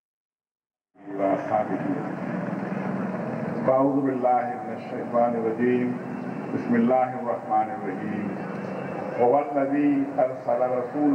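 An elderly man speaks firmly into a microphone, heard through loudspeakers.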